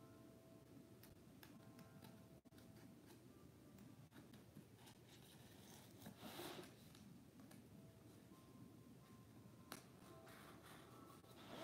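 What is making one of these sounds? A pen scratches on cardboard.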